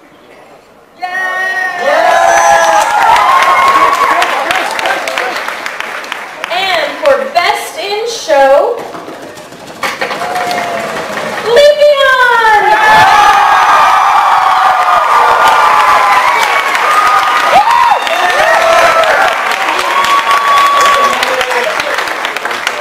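An audience cheers and applauds.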